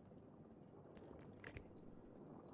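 A small part clicks into place.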